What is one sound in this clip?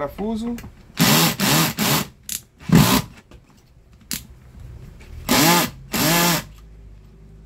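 A cordless drill whirs in short bursts, driving screws.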